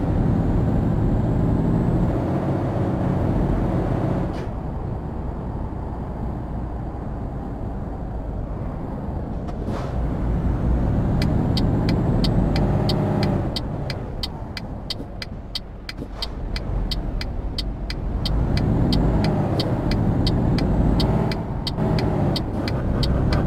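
A truck engine rumbles steadily while driving, rising and falling in pitch.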